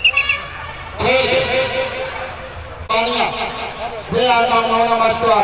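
A man chants loudly outdoors.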